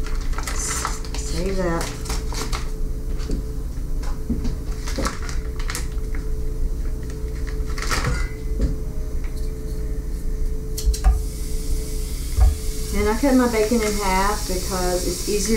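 Scissors snip through plastic.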